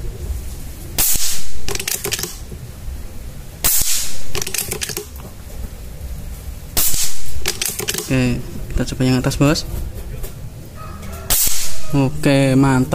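An air rifle fires with a sharp crack.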